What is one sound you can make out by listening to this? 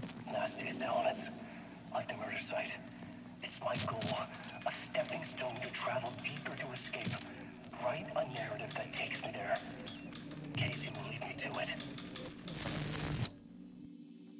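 A man speaks slowly and gravely, heard through a small television speaker.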